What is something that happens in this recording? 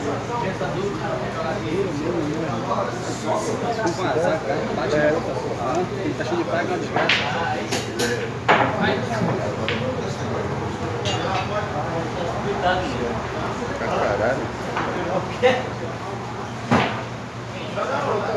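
Several young men talk and chatter nearby.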